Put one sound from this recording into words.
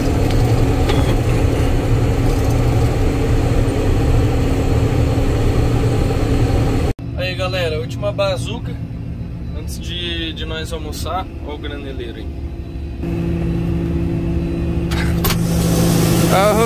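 A combine engine drones steadily from inside a cab.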